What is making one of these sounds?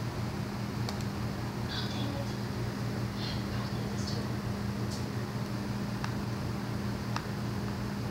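Game sounds play quietly from a television loudspeaker.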